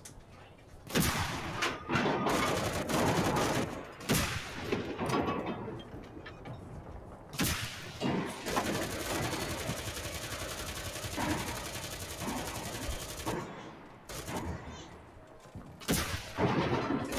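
A tank cannon fires with loud, sharp booms.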